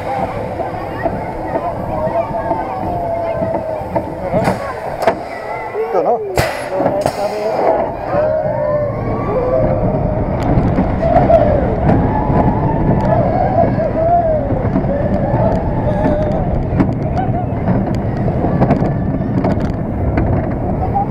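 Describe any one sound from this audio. A roller coaster rattles and rumbles along its track.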